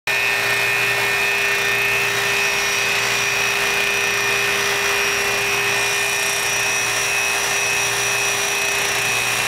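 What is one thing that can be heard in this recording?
A handheld electronic detector gives off a steady high-pitched whine.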